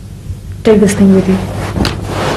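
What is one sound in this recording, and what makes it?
A young woman speaks with agitation.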